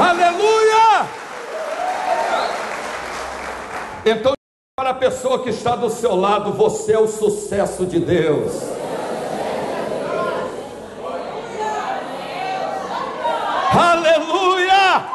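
A middle-aged man preaches with animation into a microphone, heard through loudspeakers in an echoing hall.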